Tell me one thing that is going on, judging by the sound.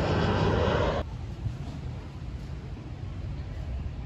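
Wind blows outdoors.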